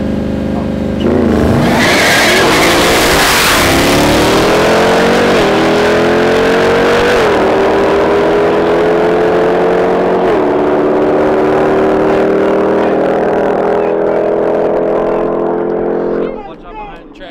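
A race car launches with a loud roar and its engine screams higher through several gear changes as it speeds away.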